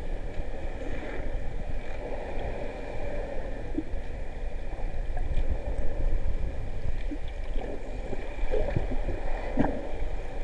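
Water rumbles and swirls underwater, with muffled low surging.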